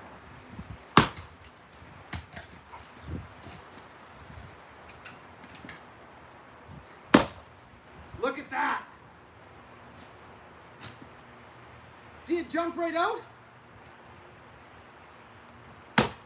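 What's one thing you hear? An axe splits wood with sharp cracks.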